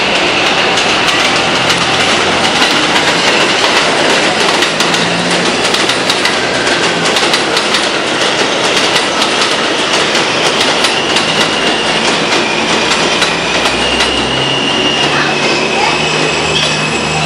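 Subway train wheels clatter over rail joints.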